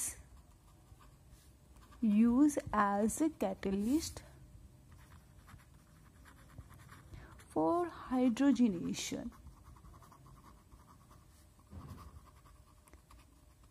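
A marker pen squeaks softly across paper.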